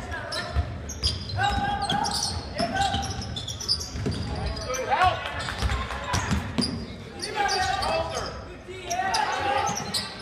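Sneakers squeak sharply on a wooden floor.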